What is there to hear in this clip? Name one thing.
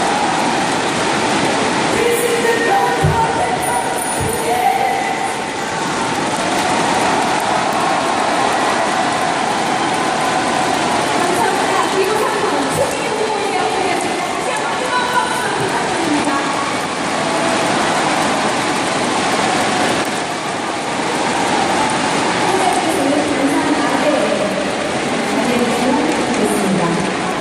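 A large crowd cheers and chants in a big echoing hall.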